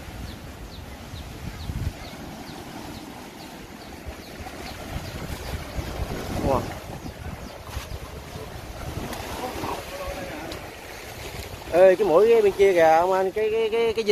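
Waves wash and splash onto a rocky shore.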